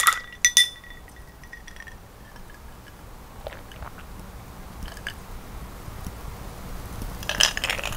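A woman gulps down a drink.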